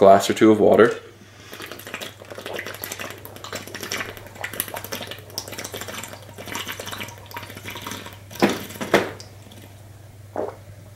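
A young man gulps a drink in long swallows.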